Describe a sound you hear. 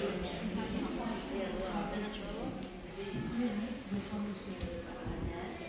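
Several men and women chat at nearby tables.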